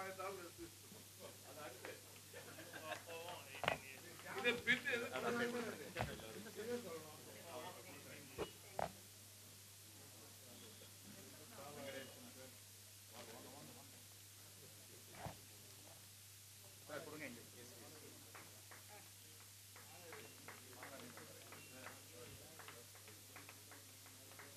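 Men talk and murmur nearby in a small crowd.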